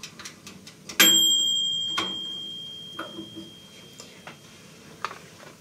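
An oven timer bell rings once and slowly fades.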